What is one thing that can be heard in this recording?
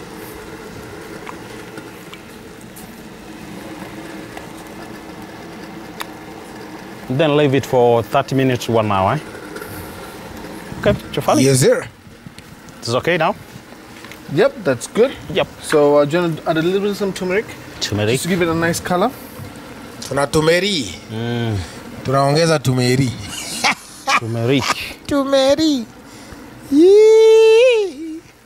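Gloved hands rub seasoning onto raw fish with a soft squelch.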